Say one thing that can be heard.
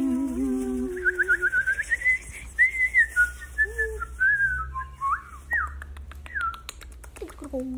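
A young woman whistles a lively tune over an online call.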